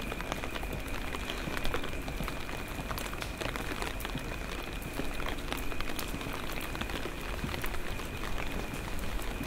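Rain falls steadily outdoors, with drops pattering on wet cobblestones.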